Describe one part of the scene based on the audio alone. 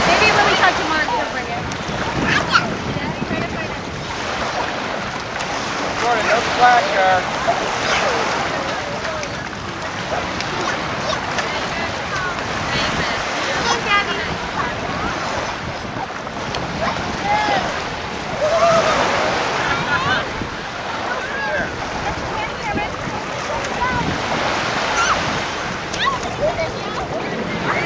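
Water laps and splashes around people wading outdoors.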